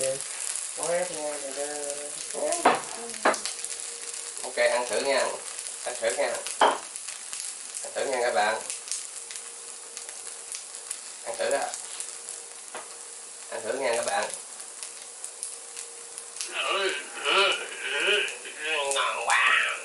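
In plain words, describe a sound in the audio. Food sizzles and crackles in a frying pan.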